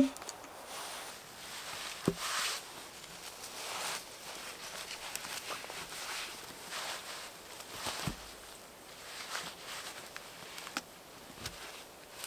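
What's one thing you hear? Leaves and twigs rustle as someone moves about.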